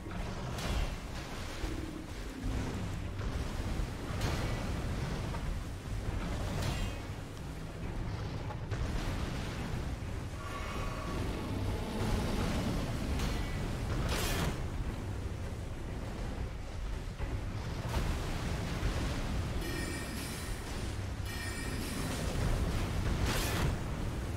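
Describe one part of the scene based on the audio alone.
A huge beast growls and roars.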